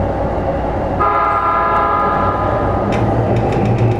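A train's electric motor whines in steady tones as it pulls away.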